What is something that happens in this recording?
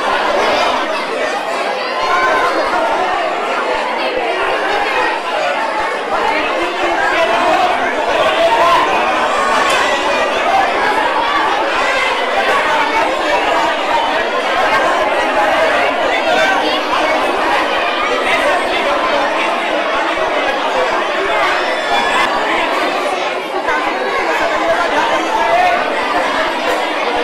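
A crowd of men and women chatters loudly all around.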